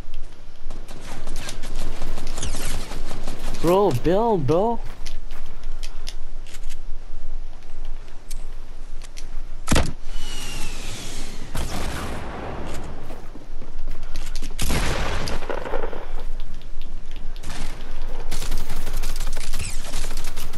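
Wooden walls clatter and thud as they are built.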